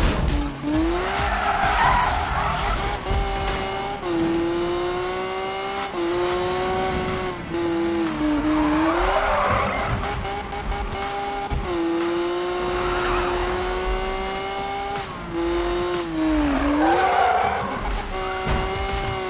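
Tyres screech in bursts as a car drifts.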